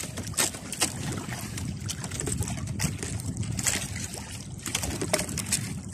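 Water splashes and drips.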